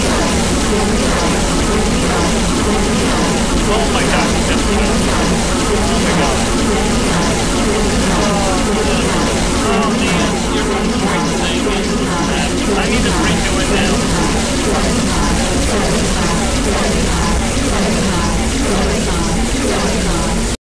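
An energy beam roars and crackles loudly.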